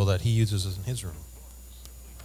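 A man speaks into a microphone over loudspeakers in a large hall.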